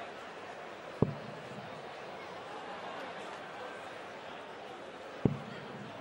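A dart thuds into a dartboard.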